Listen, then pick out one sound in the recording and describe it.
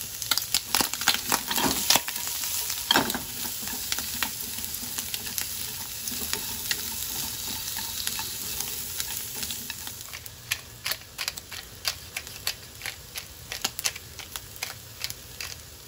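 Chopsticks tap and scrape against a pan.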